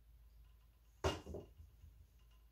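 A metal case clunks sharply as it is moved.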